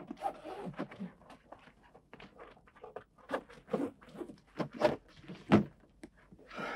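A suitcase's latches click and its lid thumps as it is handled.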